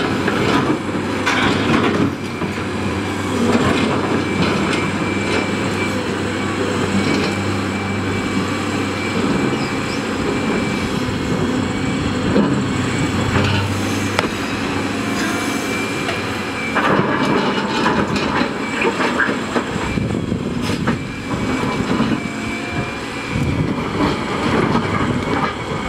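A large excavator's diesel engine rumbles steadily.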